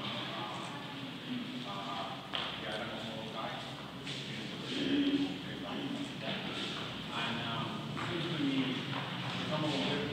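Several adults chat over one another in a large echoing room.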